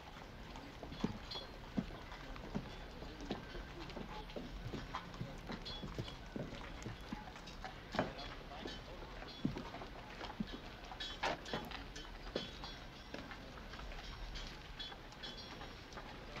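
Footsteps knock on wooden boards.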